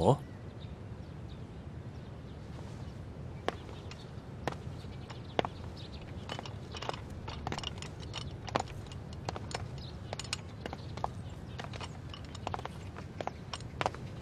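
Men scuffle with soft knocks and rustles.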